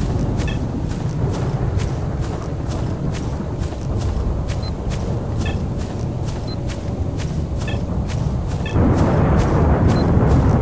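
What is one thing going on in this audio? Footsteps tread steadily through grass.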